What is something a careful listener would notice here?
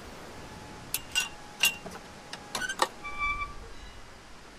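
A wooden gate creaks open.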